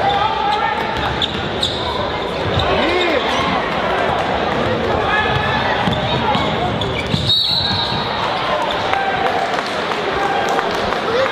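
A crowd cheers and murmurs in a large echoing gym.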